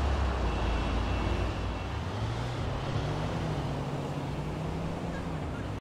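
Car engines hum and rumble along a nearby street.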